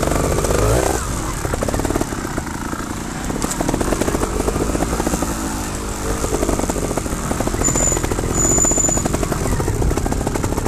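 Tyres crunch and rattle over a bumpy dirt trail.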